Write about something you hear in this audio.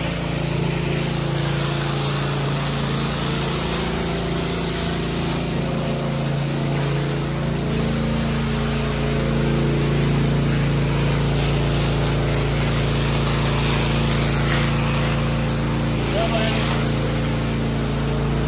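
Water sprays hard from a hose and splashes onto wet pavement.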